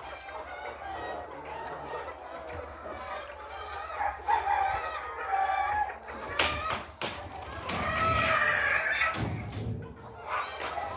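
A large flock of hens clucks and squawks.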